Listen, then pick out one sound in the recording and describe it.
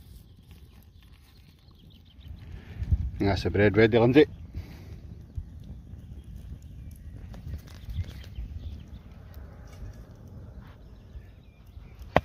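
A wood fire crackles.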